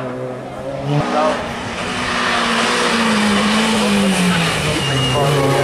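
A second racing car engine revs hard and roars as it approaches.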